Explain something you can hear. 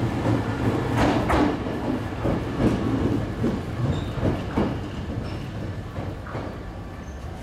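Train wheels clatter over points.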